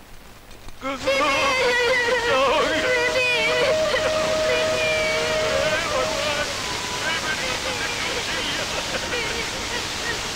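A woman and children cry out and wail in fear.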